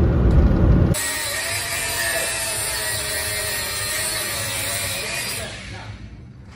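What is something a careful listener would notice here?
An angle grinder whines loudly, grinding metal.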